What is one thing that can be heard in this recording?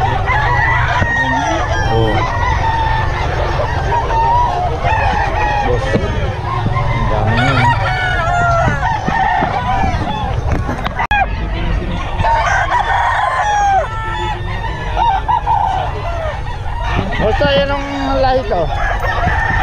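A crowd of men chatter loudly all around, close by, outdoors.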